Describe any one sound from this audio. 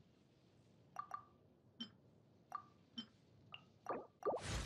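Soft interface clicks tick several times.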